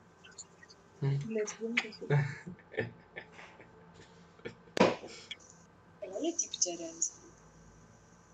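Young women speak and laugh over an online call.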